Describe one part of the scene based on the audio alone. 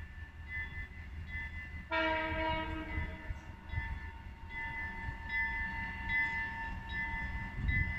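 A train rumbles slowly along the tracks.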